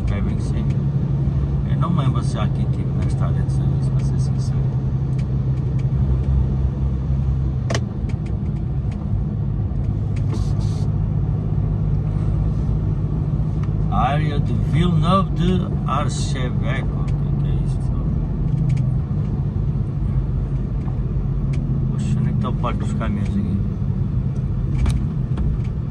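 Tyres roll on smooth asphalt with a steady low rumble.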